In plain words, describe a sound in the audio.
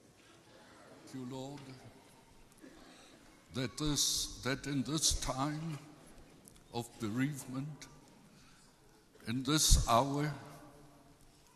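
A second man speaks in short phrases into a microphone.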